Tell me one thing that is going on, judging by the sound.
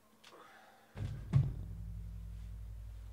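A box is set down on a surface with a dull thud.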